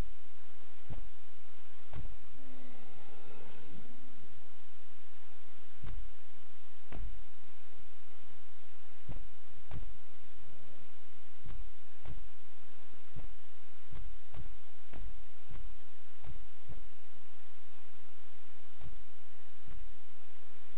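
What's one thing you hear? Short soft clicks from a game menu sound again and again at an uneven pace.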